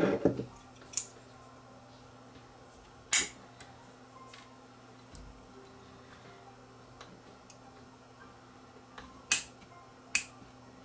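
A metal tool taps and scrapes against components.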